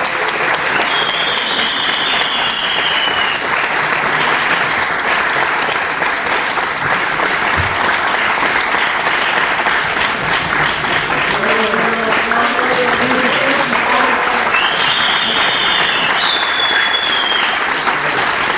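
Audience members cheer and whistle shrilly.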